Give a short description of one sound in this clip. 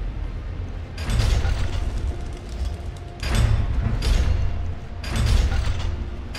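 A figure scrambles and thuds against a stone wall while climbing.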